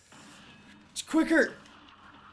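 A young man speaks loudly into a close microphone.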